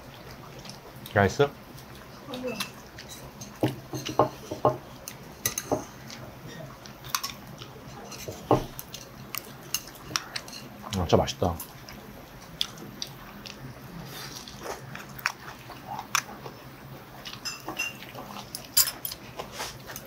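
Chopsticks click against dishes.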